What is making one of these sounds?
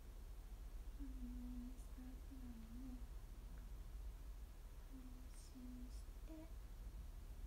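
A young woman hums softly close by.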